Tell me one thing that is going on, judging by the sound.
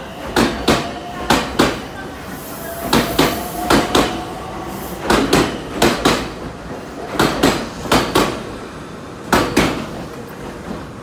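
A train rolls past close by, its wheels clattering rhythmically over rail joints.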